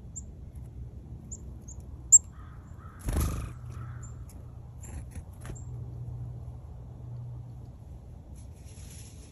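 A small bird chirps in high, short notes.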